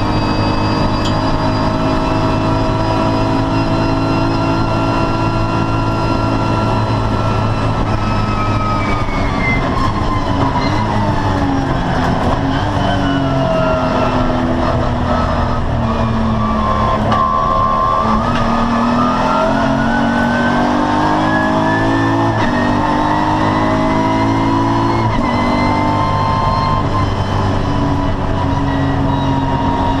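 A racing car engine roars loudly from inside the cabin, dropping in pitch as the car slows and climbing again as it speeds up.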